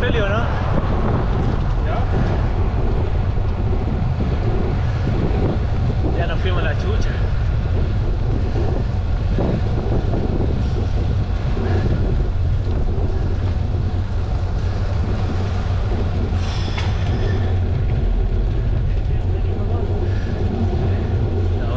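Wind rushes loudly past the microphone outdoors.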